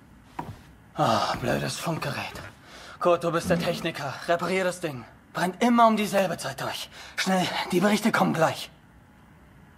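A man speaks with agitation and urgency, close by.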